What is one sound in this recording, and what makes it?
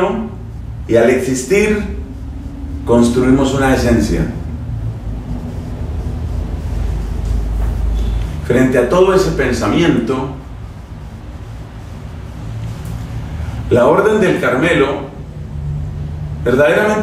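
A man speaks with animation into a clip-on microphone, pausing between phrases.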